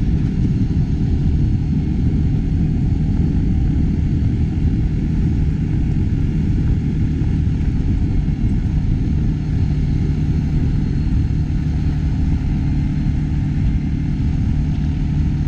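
An engine hums steadily up close as a vehicle drives along.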